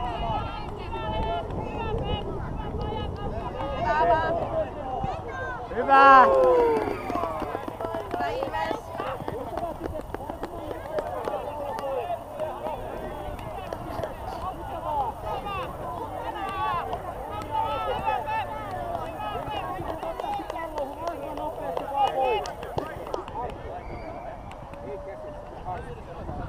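Children shout and call out across an open field, some distance away.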